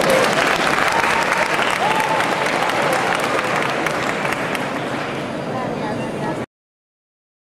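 An audience claps and cheers in a large echoing hall.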